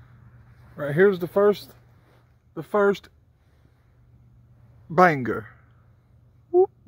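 A young man talks at close range, calmly and in short bursts.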